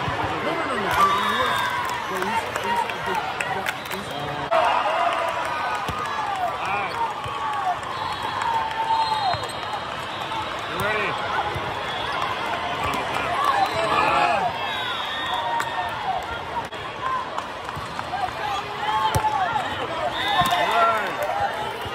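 A volleyball is struck with sharp slaps now and then.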